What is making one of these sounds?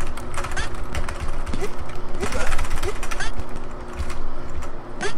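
Rising game sound effects chirp quickly.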